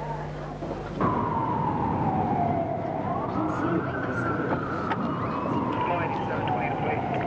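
A siren wails loudly, rising and falling.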